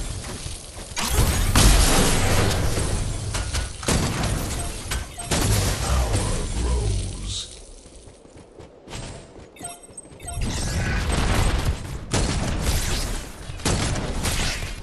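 Energy guns fire rapidly in bursts.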